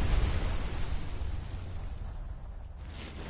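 A wave crashes loudly against rocks.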